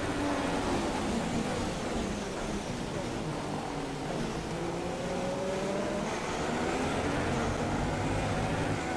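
Other racing car engines whine close by.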